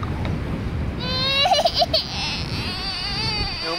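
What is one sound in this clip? A young child whines in a high voice.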